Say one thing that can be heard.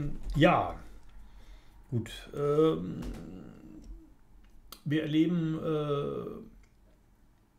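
A middle-aged man speaks calmly and close to a microphone, in short phrases.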